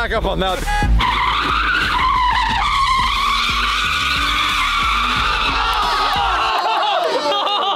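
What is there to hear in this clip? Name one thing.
Car tyres squeal loudly and steadily.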